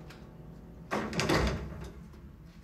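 A door shuts with a thud.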